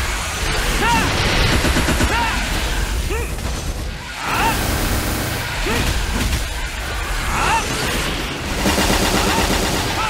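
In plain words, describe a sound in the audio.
Game spell effects burst and crackle in rapid succession.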